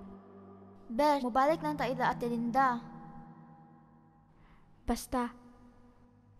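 A young girl cries out in a high voice close by.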